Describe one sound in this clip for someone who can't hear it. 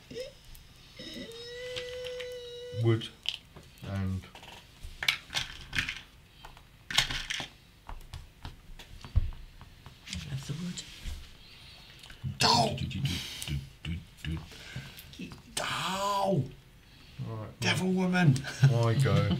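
Several men talk and laugh nearby.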